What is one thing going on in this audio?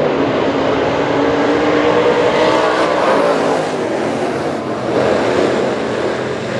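Race cars rev and roar past up close.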